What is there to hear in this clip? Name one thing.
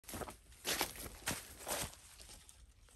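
Leaves rustle as a branch is shaken.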